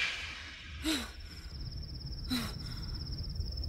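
A man groans and sobs in anguish.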